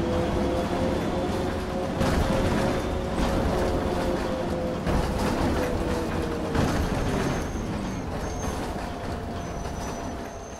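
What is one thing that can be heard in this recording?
Tyres rumble over cobblestones.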